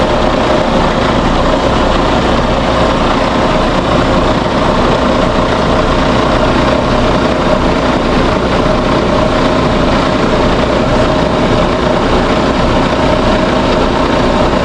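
A heavy-haul diesel truck pulls slowly across gravel, its engine droning.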